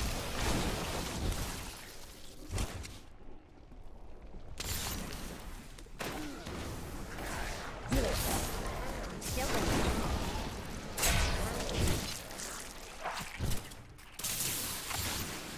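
Electric bolts zap and crackle.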